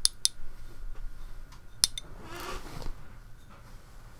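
A palette is set down on a table with a light knock.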